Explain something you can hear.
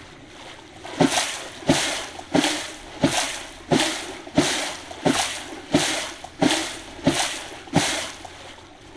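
A swimmer splashes through water with regular strokes.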